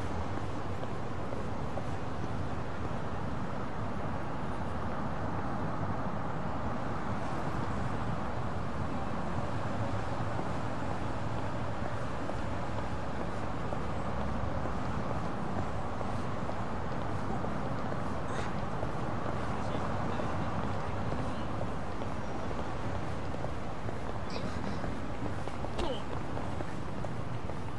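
Cars drive past on a nearby road with a steady hum.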